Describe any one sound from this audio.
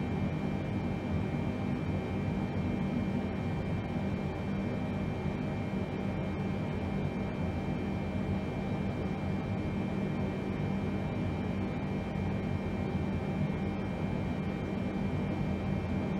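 An airliner's engines drone steadily with a low rumble.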